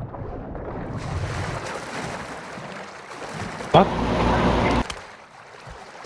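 Water splashes and sloshes as a swimmer strokes through it.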